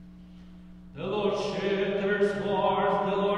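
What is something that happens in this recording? A man chants loudly in a large echoing hall.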